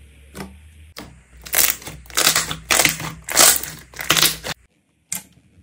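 Hands squish and squeeze slime with loud, crackling squelches.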